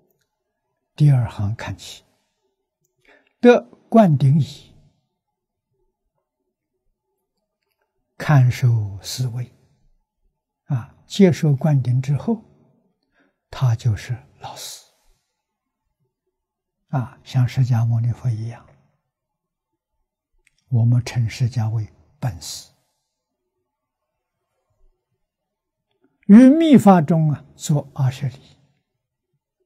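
An elderly man speaks calmly and slowly into a microphone, in short phrases with pauses.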